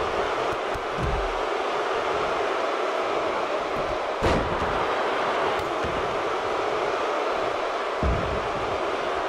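Bodies slam heavily onto a wrestling mat with dull thuds.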